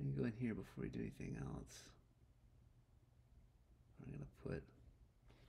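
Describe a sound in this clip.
A man talks calmly close to a microphone.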